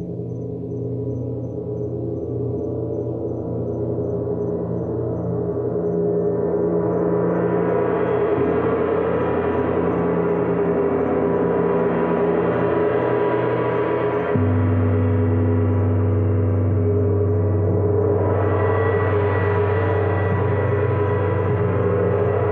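A large gong hums and swells in a steady, shimmering drone.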